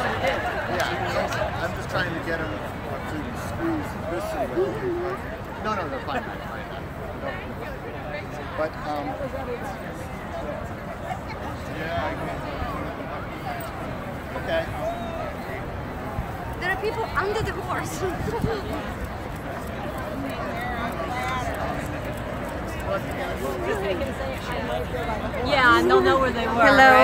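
A large crowd of people chatters outdoors.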